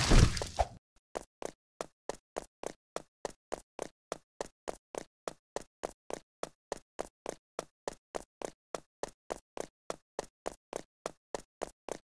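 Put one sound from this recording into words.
Quick footsteps patter at a steady running pace.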